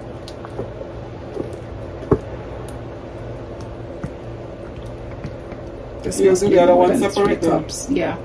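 A squeeze bottle squirts out a thick sauce.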